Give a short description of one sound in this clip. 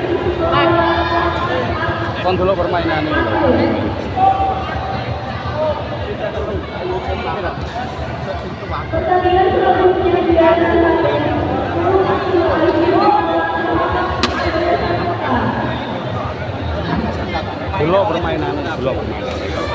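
A crowd of spectators cheers and shouts loudly all around.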